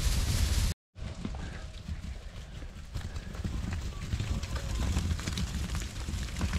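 Sheep clatter through a wooden gate.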